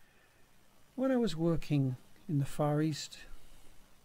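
A man speaks close to the microphone in a few short phrases.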